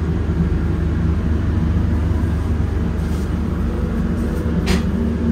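A train rumbles steadily as it rolls along.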